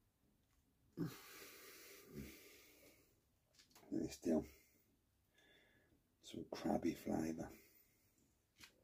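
Thick fabric rustles and brushes close by.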